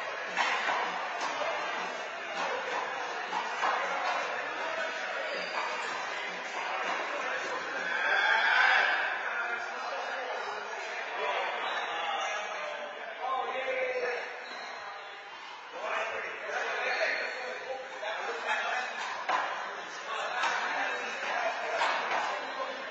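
A handball smacks against a wall in an echoing court.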